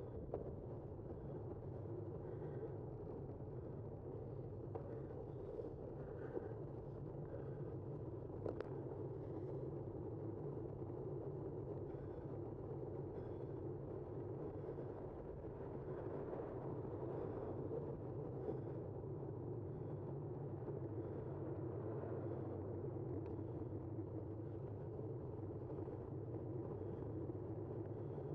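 Wind rushes steadily past while moving outdoors.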